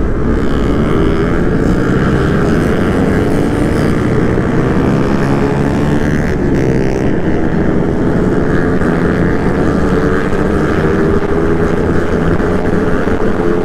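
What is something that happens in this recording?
Other motorcycle engines drone nearby as riders pass.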